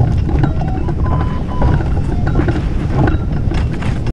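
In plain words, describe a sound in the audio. A sail flutters and rustles in the wind.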